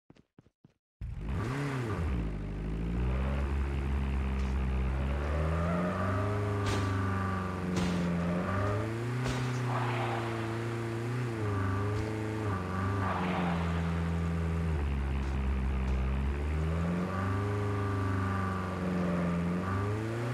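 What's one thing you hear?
A heavy vehicle engine roars and revs up and down as it drives.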